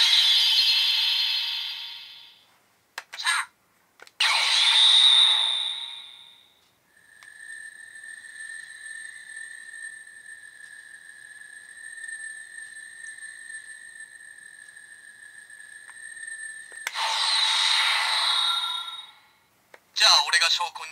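A toy belt buckle plays loud electronic sound effects.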